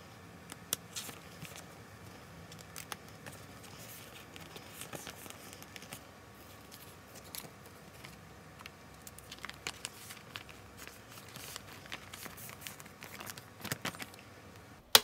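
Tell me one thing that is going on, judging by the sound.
Plastic sleeves crinkle and rustle as pages are turned.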